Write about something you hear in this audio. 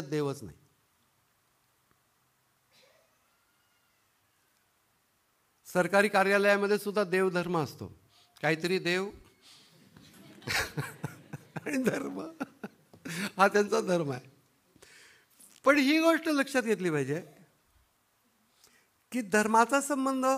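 A middle-aged man speaks expressively into a microphone, with pauses.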